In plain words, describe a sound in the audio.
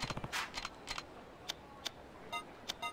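Short electronic clicks tick quickly.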